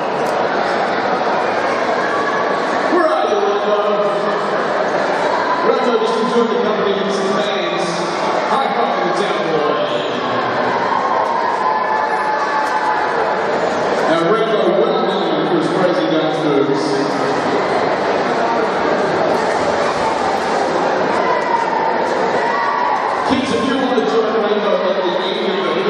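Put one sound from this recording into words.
A large crowd chatters and murmurs in an echoing hall.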